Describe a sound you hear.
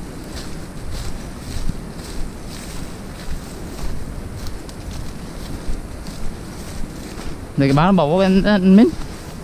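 Footsteps rustle and crunch through dry leaves and undergrowth.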